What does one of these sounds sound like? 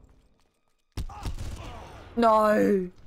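Gunshots fire in a burst.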